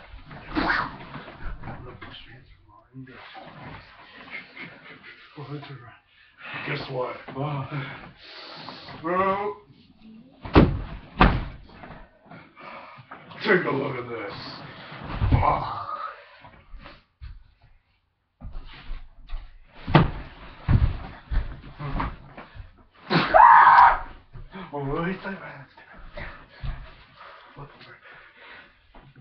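Bodies thud and bump as two people grapple.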